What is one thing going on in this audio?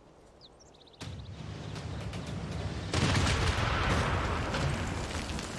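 A rumbling blast booms out as an air strike lands.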